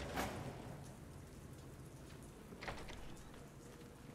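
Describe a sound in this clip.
A heavy metal door slides open.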